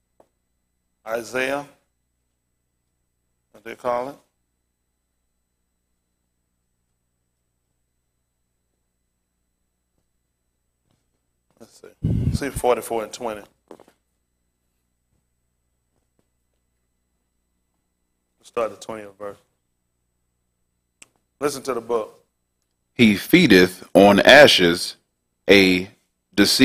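A man speaks calmly through a microphone, in short bursts with long pauses.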